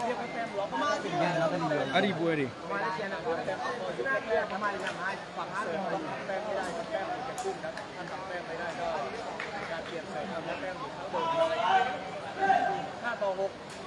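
A large crowd of spectators chatters and shouts.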